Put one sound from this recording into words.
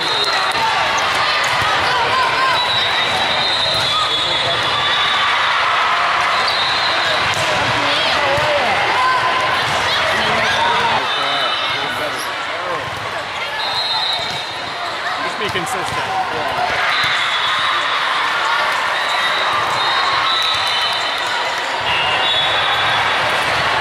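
A crowd chatters and cheers throughout a large echoing hall.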